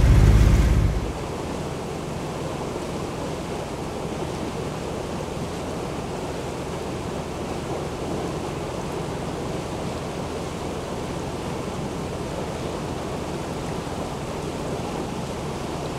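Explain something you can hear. Small waves lap softly.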